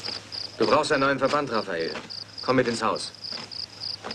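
A man speaks in a low, tense voice.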